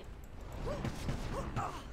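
A burst of fire roars.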